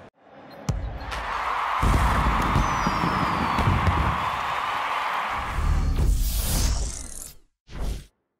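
A large crowd cheers and roars in a stadium.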